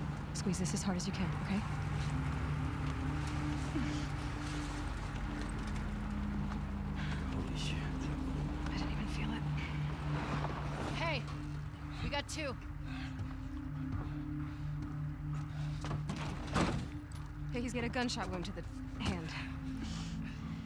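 A young woman speaks in a shaky voice.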